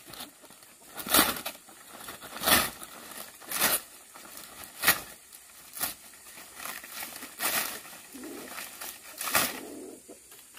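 A blade strikes and chops through leaf stems.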